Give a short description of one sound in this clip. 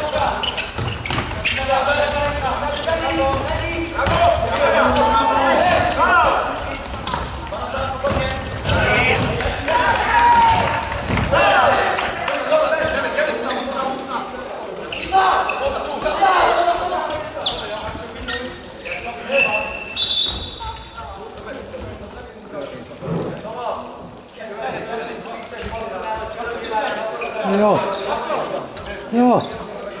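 A ball thuds as players kick it, echoing in a large hall.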